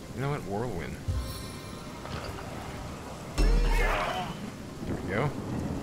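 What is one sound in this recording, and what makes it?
Fire spells burst with a roar.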